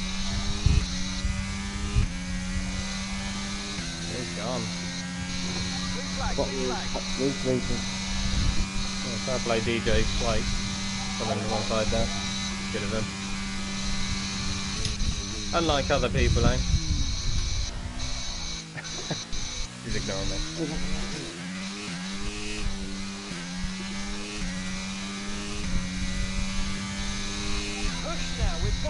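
A racing car engine hums at a high, steady pitch, drops sharply as the car slows, then climbs again.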